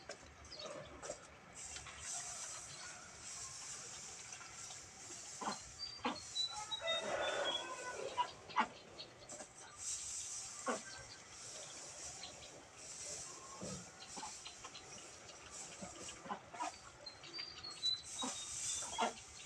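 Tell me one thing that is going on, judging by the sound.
Boots scuff on damp ground.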